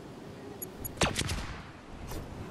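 A loud burst of magic sparks crackles as a game character lands.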